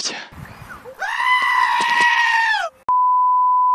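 A goat screams loudly in a long, shrill bleat.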